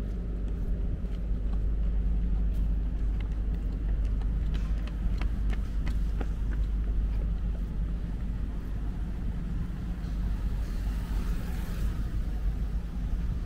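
Traffic hums steadily along a city street.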